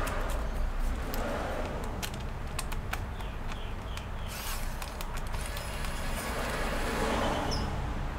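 Rubber gloves rustle and squeak as hands rub together.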